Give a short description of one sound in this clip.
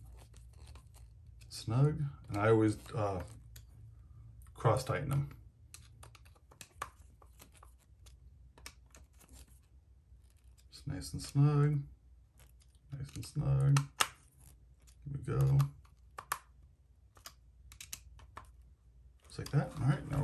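A small screwdriver turns screws with faint clicks and scrapes.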